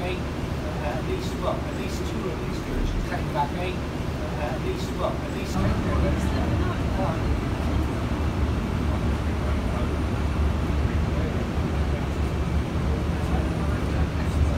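A bus engine rumbles low and steady while the bus rolls along.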